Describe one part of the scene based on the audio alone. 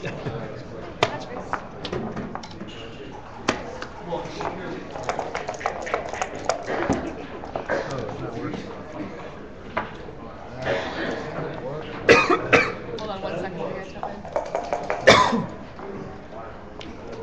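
Game pieces click and clack as they are moved across a wooden board.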